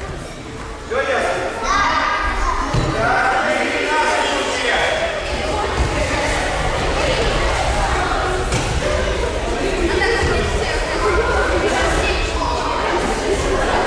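Many children chatter and shout in an echoing hall.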